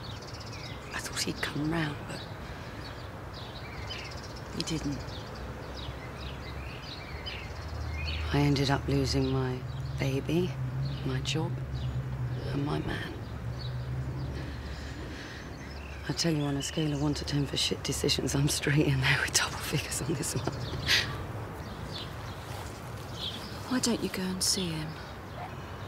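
A woman speaks quietly and earnestly, close by.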